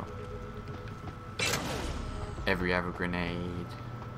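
A metal door slides open.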